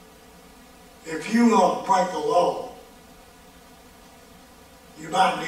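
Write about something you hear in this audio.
An elderly man speaks slowly and deliberately into a microphone.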